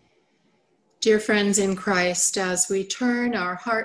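A middle-aged woman speaks calmly, heard through an online call.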